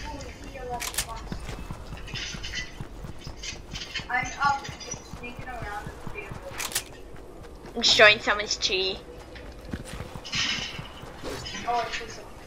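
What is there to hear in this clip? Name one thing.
Footsteps patter quickly on grass and dirt.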